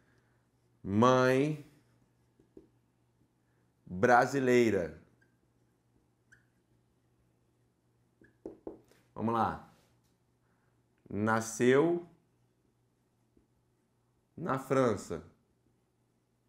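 A man speaks in short, calm phrases close to a microphone.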